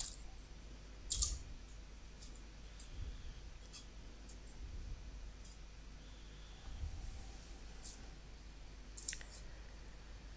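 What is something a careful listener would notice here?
Dry onion skin crackles as fingers peel it.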